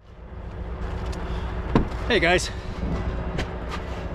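A vehicle door clicks open.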